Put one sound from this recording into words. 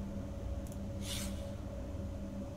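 A soft whoosh sounds as a game menu window opens.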